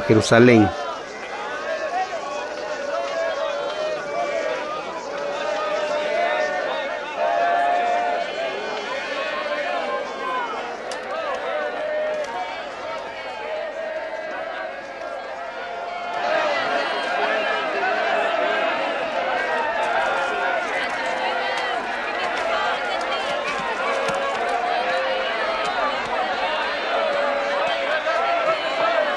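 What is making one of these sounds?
A large crowd murmurs and chatters all around.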